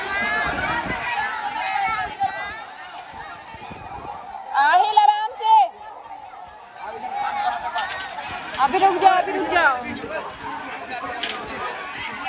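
Children shout and chatter loudly all around.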